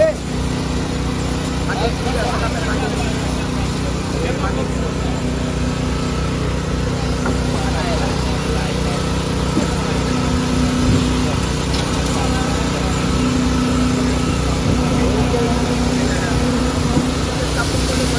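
Men talk nearby outdoors.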